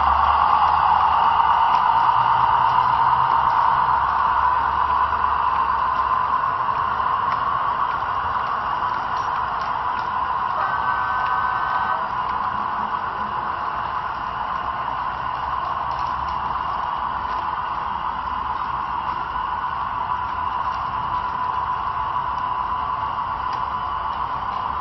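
A model train's motor whirs steadily as it rolls along the track.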